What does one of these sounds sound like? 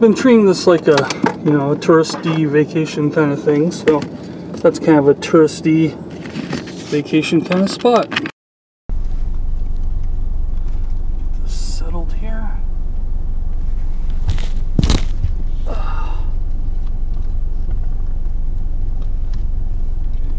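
Rain patters on a car windscreen.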